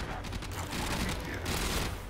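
Gunshots blast in quick bursts.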